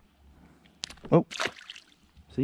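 A fish splashes as it is dropped into shallow water.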